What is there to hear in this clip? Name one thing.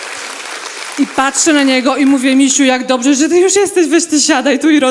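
A young woman speaks with animation into a microphone in a large hall.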